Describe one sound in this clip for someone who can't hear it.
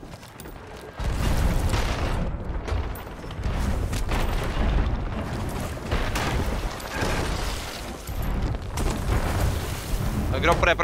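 Water splashes loudly as it is thrown from a bucket.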